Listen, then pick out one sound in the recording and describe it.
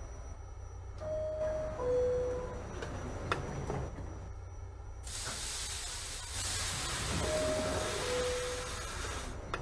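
A two-tone door chime sounds on a subway car.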